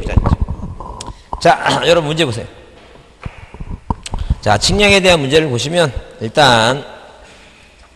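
A middle-aged man speaks with animation through a handheld microphone.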